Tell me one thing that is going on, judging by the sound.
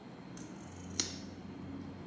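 A small plastic cap clicks once.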